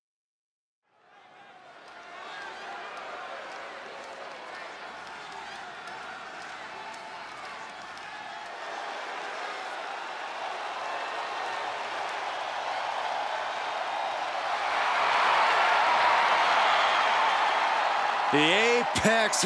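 A large crowd cheers and roars in a big echoing arena, growing louder.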